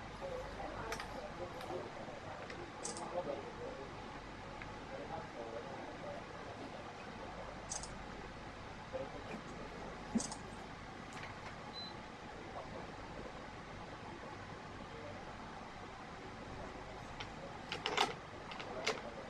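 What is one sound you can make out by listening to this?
Metal clamps click and snap shut on the strings.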